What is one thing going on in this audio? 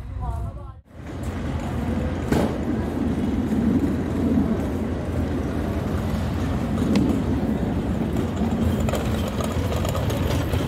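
A passenger train rolls past close by, its wheels clattering loudly.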